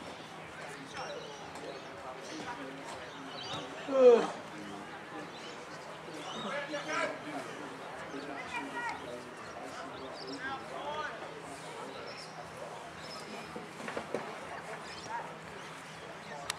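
Young men shout and call out to each other in the distance outdoors.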